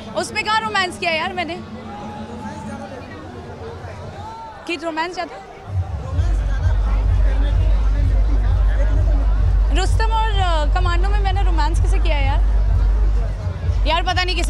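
A young woman speaks animatedly into nearby microphones.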